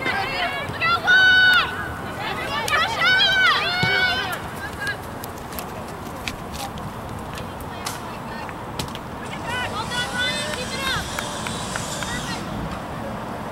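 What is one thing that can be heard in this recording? Young women shout loudly across an open field.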